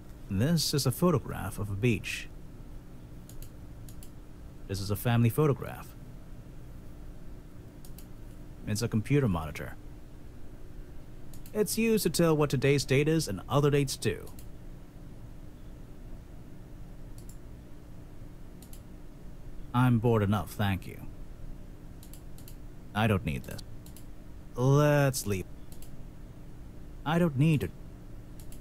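A man speaks in short, flat remarks.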